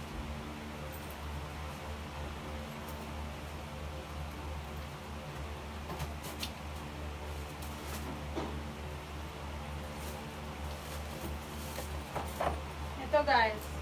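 Clothes rustle as a woman rummages through a pile.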